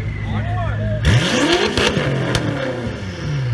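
A car exhaust pops and crackles loudly.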